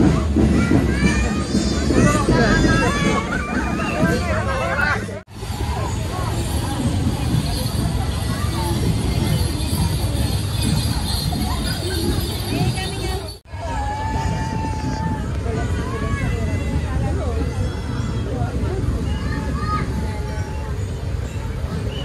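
A crowd of people chatters and cheers outdoors.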